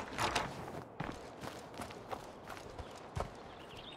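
Footsteps run across grass outdoors.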